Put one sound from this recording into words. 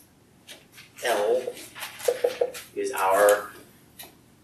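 A woman speaks calmly in a room with a slight echo.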